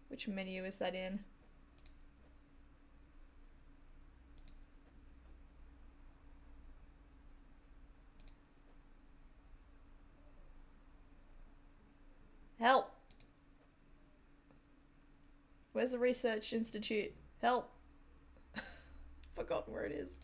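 A young woman talks casually and laughs now and then, close to a microphone.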